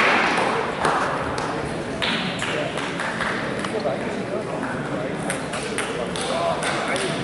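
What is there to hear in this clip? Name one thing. Table tennis balls click sharply against paddles and tables, again and again.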